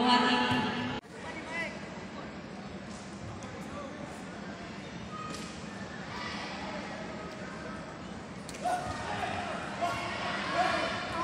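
A crowd murmurs quietly in a large hall.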